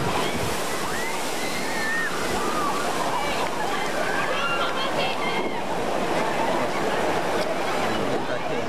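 Young riders scream and shriek with excitement.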